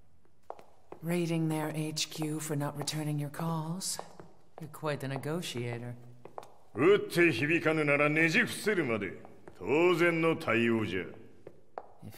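An elderly man speaks slowly in a deep, stern voice.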